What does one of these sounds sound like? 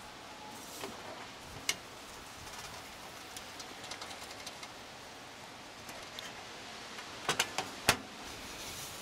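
A metal cover knocks and scrapes against a metal case.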